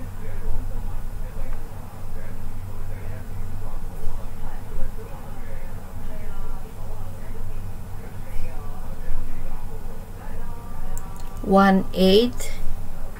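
A middle-aged woman talks calmly over an online call.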